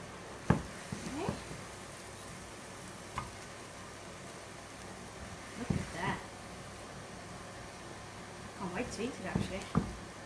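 A spatula scrapes and stirs vegetables in a pan.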